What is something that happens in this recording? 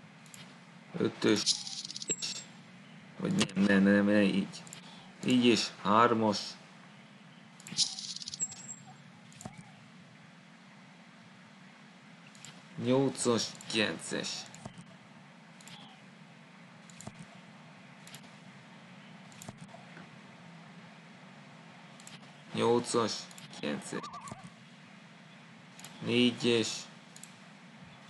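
A young man talks into a microphone in short, casual bursts.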